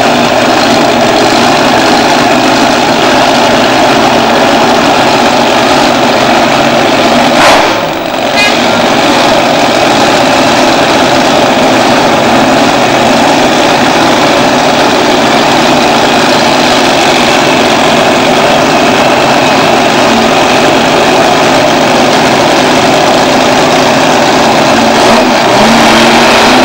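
A nitro-fuelled top fuel dragster engine idles with a loud, steady roar.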